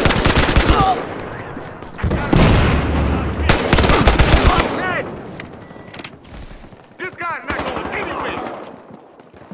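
Rapid gunfire cracks in bursts.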